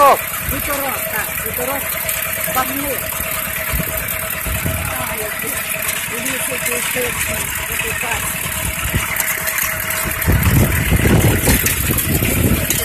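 A single-cylinder diesel walk-behind tractor chugs as it drives along.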